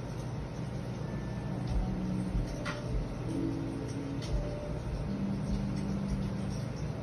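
Hands rub and press softly on bare skin.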